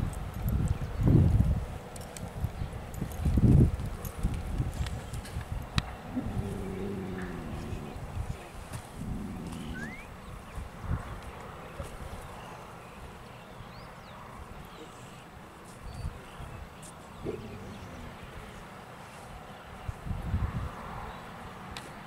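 Wind gusts loudly outdoors.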